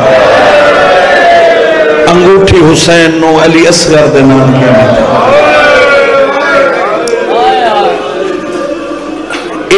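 A man speaks passionately into a microphone, heard through loudspeakers in an echoing hall.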